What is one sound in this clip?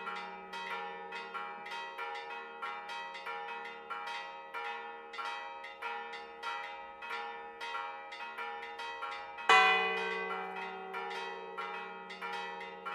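Church bells ring out in a steady peal.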